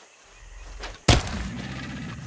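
A thrown hatchet strikes an animal with a sharp thud.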